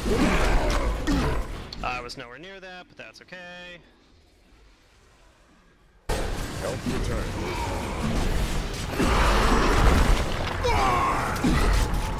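Magic spells blast and crackle in a fierce battle.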